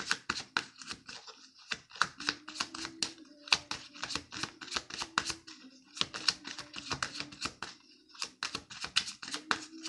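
A young woman whispers very close to a microphone.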